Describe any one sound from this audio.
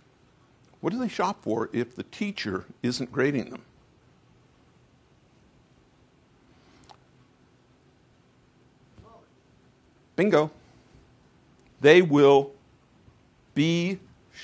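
An elderly man speaks with animation through a microphone, pausing between phrases.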